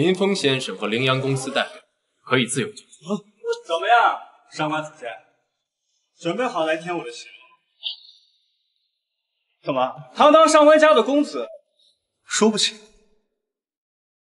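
A young man speaks firmly and close by.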